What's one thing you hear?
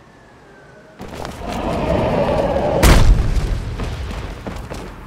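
An electric charge crackles and zaps.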